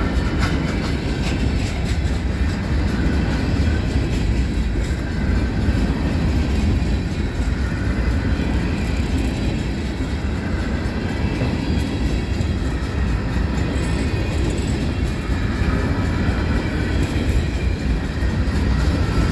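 A long freight train rumbles steadily past up close.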